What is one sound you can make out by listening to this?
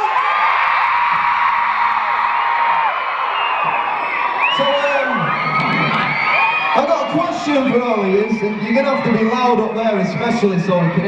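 A crowd of young fans screams in a large hall.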